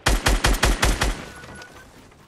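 Rapid gunfire rattles loudly in a video game.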